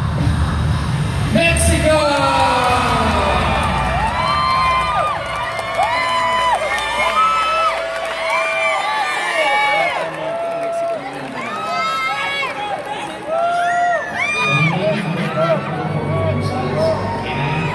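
A large crowd screams and cheers loudly in a big echoing hall.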